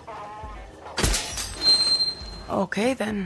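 A metal container door creaks open with a clang.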